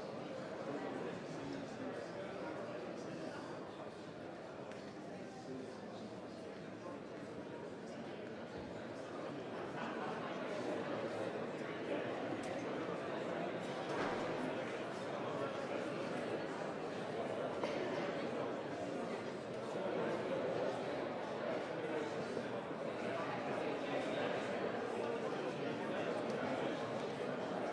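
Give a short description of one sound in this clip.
Many people murmur and chatter in a large echoing chamber.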